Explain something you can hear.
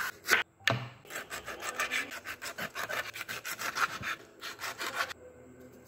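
A knife slices through soft fish flesh with quick, repeated cuts.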